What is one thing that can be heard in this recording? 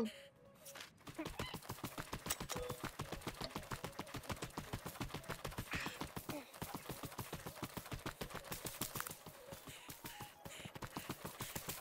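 Footsteps crunch quickly over dry ground and grass.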